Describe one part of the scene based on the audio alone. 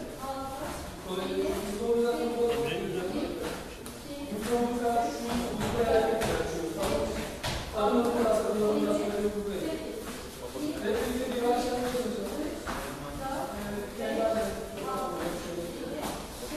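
Dancers' shoes shuffle and tap on a tiled floor.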